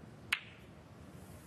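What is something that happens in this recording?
A cue sharply strikes a ball with a single click.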